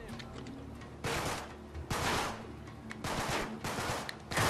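A pistol fires several loud shots.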